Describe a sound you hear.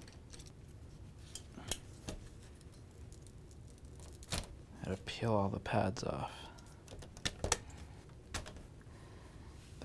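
Metal parts clack softly as hands lift them apart.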